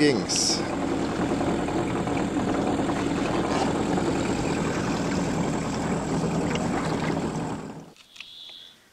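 A boat's outboard motor drones steadily, then cuts off.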